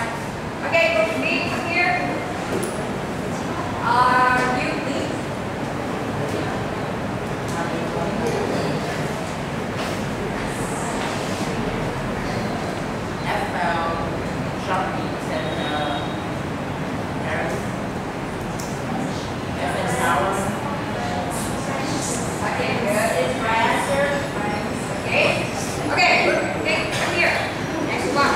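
A young man speaks aloud to a room.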